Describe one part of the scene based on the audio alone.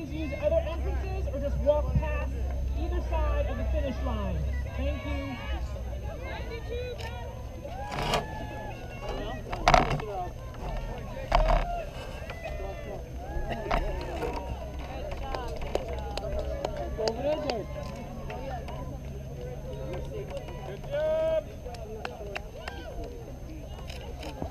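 A crowd of spectators chatters and cheers in the distance outdoors.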